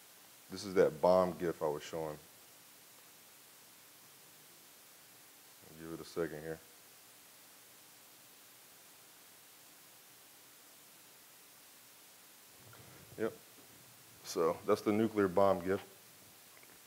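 A man speaks calmly into a microphone in short phrases, with pauses between them.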